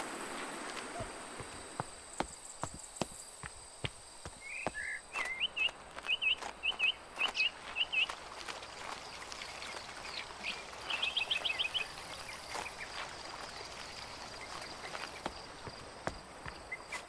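Footsteps tap steadily on a stone path.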